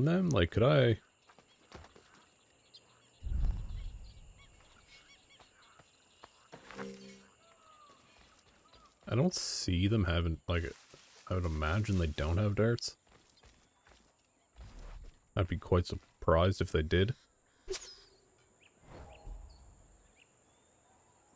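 Footsteps rustle through tall grass and leaves.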